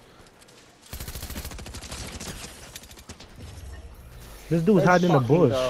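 Rapid gunshots fire close by.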